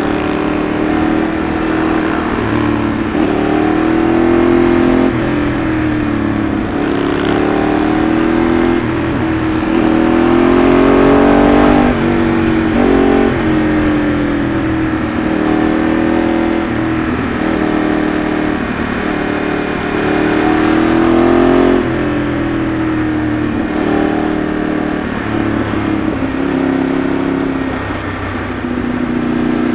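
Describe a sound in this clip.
A Ducati 848 V-twin sport bike engine rises and falls in revs through gear changes.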